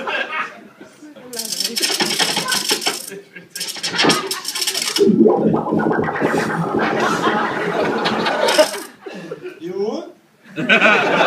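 A man speaks with animation into a microphone over loudspeakers in an echoing room.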